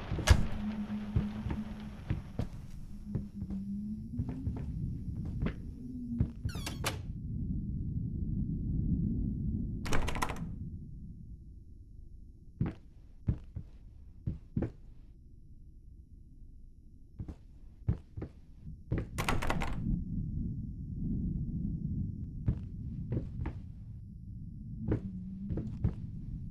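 Footsteps thud slowly on a creaking wooden floor.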